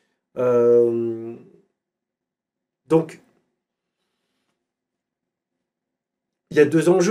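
A man speaks calmly close to a microphone, in short bursts with long pauses.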